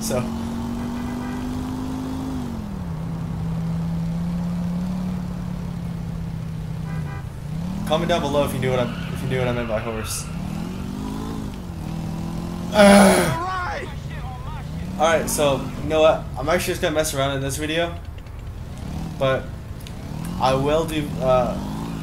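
A motorcycle engine hums steadily and revs up and down.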